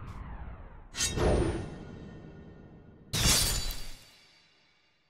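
A blade slashes through the air with a sharp swoosh.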